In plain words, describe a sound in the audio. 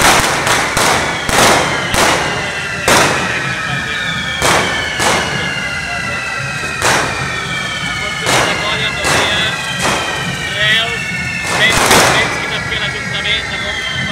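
Firecrackers bang sharply again and again.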